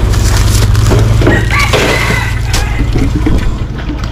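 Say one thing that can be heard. Water splashes onto wet concrete.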